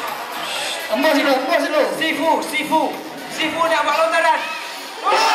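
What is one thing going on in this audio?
A man calls out loudly over the crowd.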